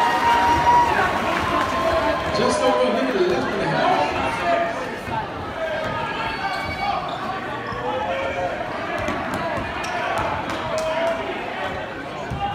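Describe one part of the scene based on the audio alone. A crowd cheers and chatters in a large echoing gym.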